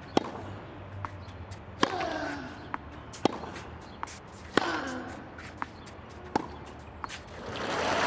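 Tennis balls bounce on a clay court.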